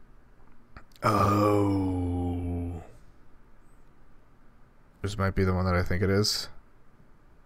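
A man speaks close to a microphone with animation.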